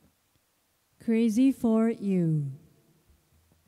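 A woman speaks brightly into a microphone.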